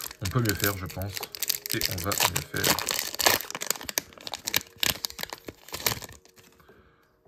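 A foil wrapper crinkles and tears loudly up close.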